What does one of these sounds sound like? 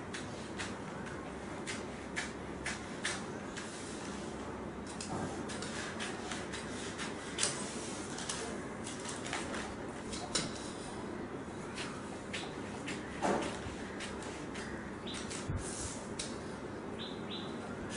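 Scissors snip through newspaper with crisp cuts.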